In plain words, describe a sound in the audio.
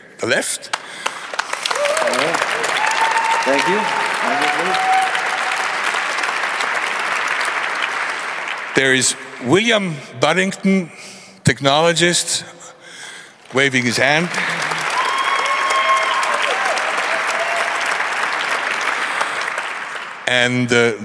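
An audience applauds and cheers.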